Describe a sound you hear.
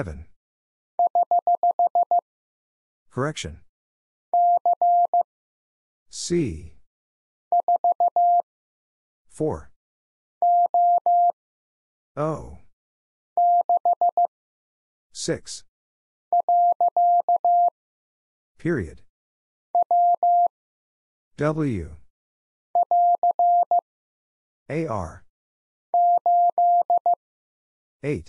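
Morse code beeps sound in quick short bursts of a steady tone.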